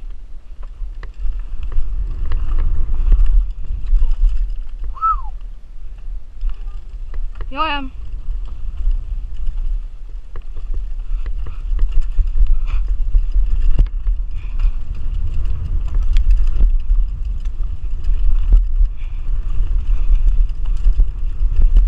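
Loose parts of a bicycle rattle and clack over bumps.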